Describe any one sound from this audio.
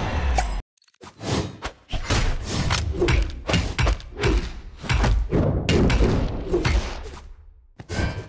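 Cartoon fighters trade blows with quick whooshes and punchy thuds.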